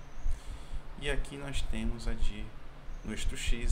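A man speaks calmly into a microphone, heard through an online call.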